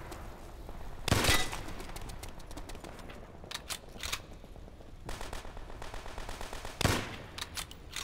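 Gunshots fire loudly in short bursts.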